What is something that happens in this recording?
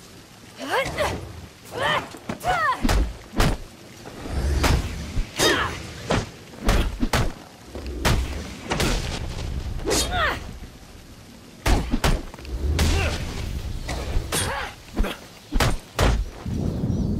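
Heavy punches and kicks land with sharp thuds in quick bursts.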